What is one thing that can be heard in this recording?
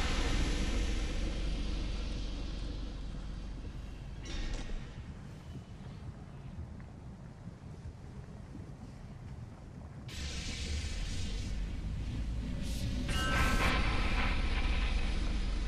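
Molten lava rumbles and bubbles with a low, steady roar.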